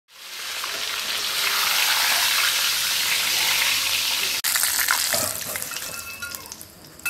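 Hot oil sizzles loudly as a fish fries.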